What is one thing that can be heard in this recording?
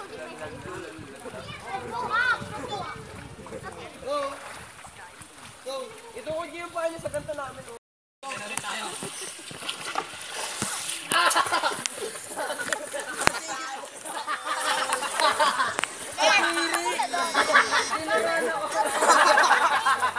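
Children and young people shout and laugh nearby in a pool.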